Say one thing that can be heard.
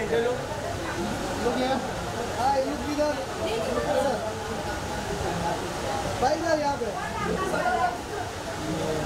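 Several men talk and call out nearby.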